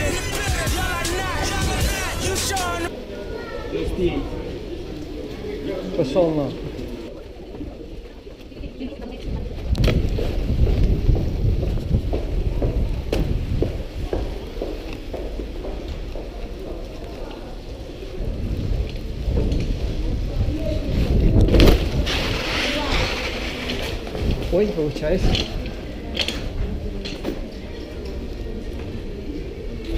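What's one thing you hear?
Bicycle tyres roll over a smooth hard floor.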